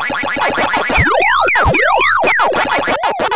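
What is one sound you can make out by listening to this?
A game's electronic tones sweep quickly up and down.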